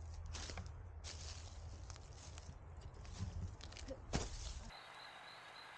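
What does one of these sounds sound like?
Footsteps crunch through dry leaves and brush.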